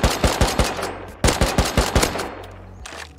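A rifle fires several rapid shots.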